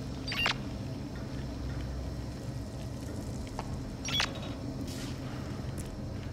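Footsteps scuff slowly over a gritty floor.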